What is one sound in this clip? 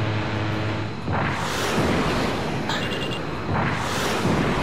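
Missiles whoosh past in rushing bursts.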